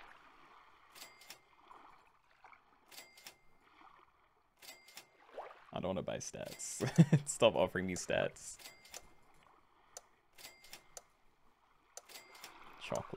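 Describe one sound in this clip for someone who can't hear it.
Short electronic chimes sound again and again as a game's items are rerolled.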